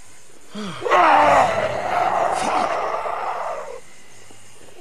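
A man shouts in anger.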